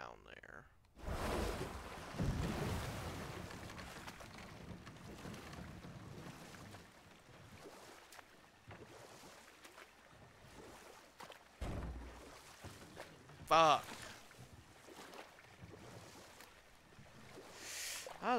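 Water splashes softly as a canoe is paddled along.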